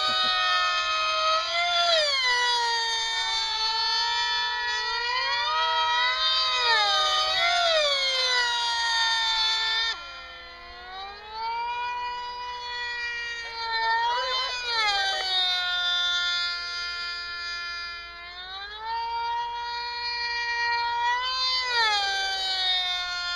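Small model aircraft engines whine loudly overhead, their pitch rising and falling as they swoop past.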